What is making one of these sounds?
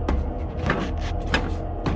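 Footsteps clank on metal ladder rungs.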